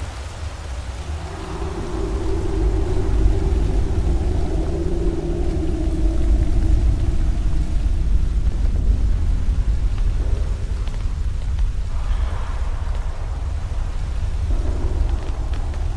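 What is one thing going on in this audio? Footsteps crunch on snow and then thump on wooden boards.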